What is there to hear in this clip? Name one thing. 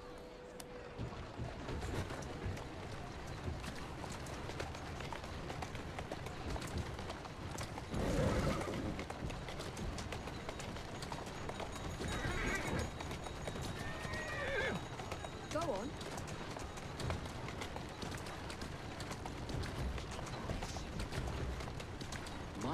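Carriage wheels rumble and rattle over cobblestones.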